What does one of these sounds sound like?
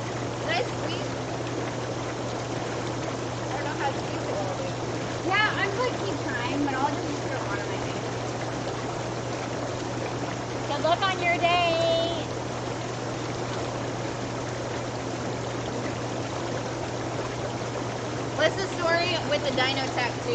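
Young women talk and laugh close by.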